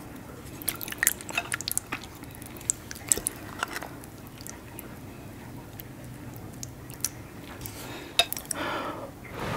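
Sticky food squelches and crunches close to a microphone.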